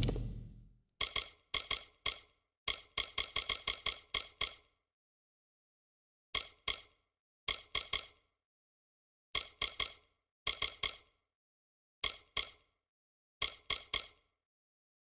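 Menu selection clicks tick rapidly in bursts.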